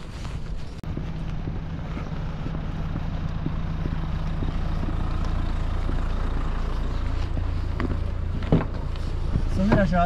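A car engine hums as the car drives up slowly.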